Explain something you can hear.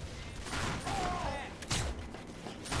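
A shotgun fires.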